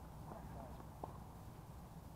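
A tennis ball pops sharply off a racket in the distance.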